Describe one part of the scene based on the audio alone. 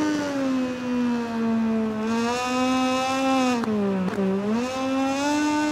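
A motorcycle engine screams at high revs, its pitch dipping as it shifts down and rising again.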